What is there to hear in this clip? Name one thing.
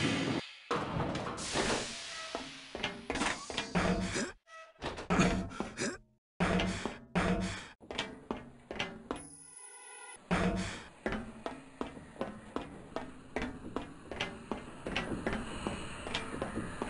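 Footsteps thud quickly on a hard floor.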